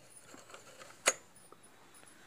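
A cassette clicks into a tape deck.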